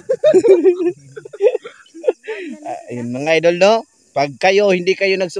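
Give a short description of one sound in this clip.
Another young man laughs and talks with animation nearby.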